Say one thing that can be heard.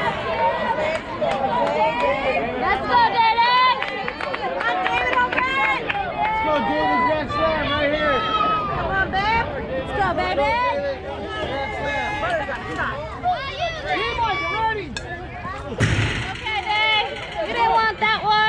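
Children shout and cheer loudly outdoors throughout.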